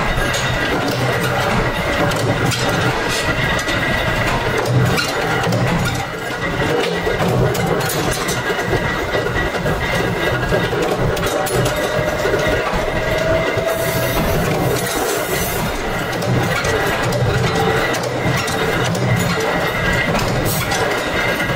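A power press stamps metal with repeated heavy thumps.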